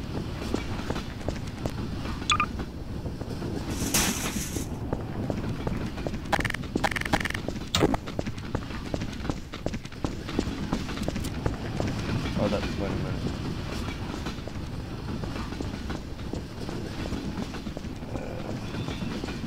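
Footsteps patter steadily on hard ground.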